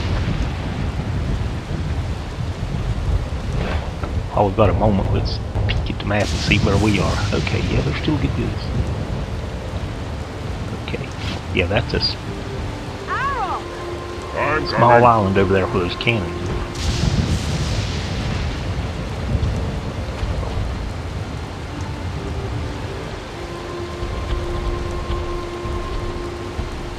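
Heavy rain falls steadily.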